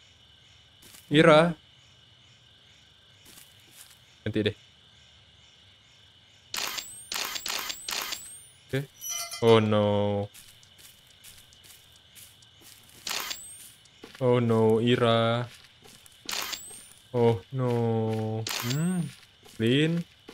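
A young man speaks into a close microphone with animation.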